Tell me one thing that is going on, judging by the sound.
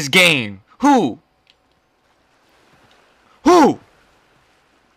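A young man talks loudly and with animation into a close microphone.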